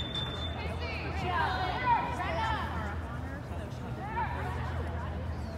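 Young women shout and call out across a large echoing indoor hall.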